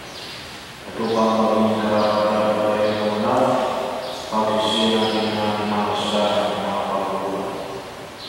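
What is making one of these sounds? A man chants in a steady, sung voice through a microphone, echoing in a large hall.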